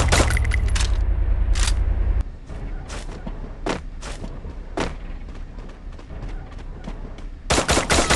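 Footsteps thud and scrape as a figure runs and climbs.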